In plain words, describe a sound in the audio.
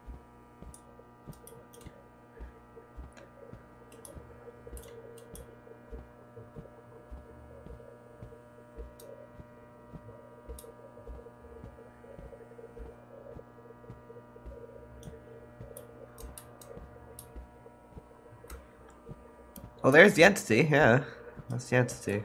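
Fluorescent lights hum steadily.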